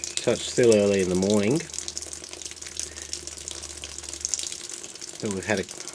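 Water trickles and splashes from a pipe.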